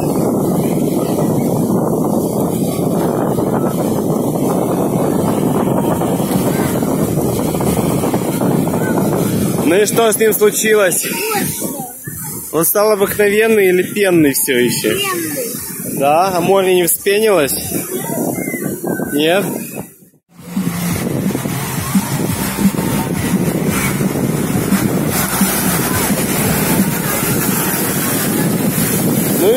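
Small sea waves break on a sandy shore.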